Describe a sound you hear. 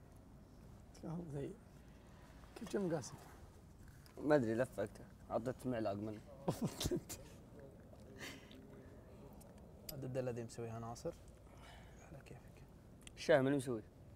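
Young men talk calmly in short bursts, close by.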